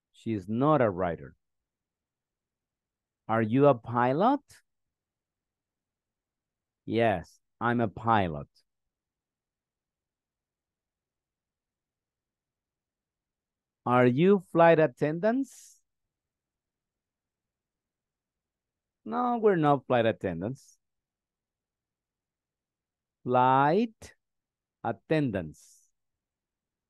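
A man speaks in short, calm phrases over an online call, with long pauses between them.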